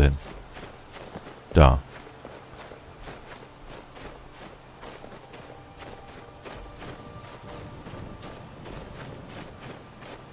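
Footsteps crunch steadily through dry grass.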